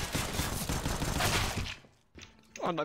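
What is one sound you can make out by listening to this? Pistol shots ring out in quick succession.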